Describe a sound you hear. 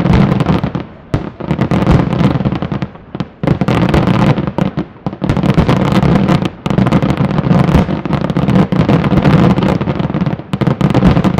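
Fireworks burst with rapid, loud booms and crackles outdoors.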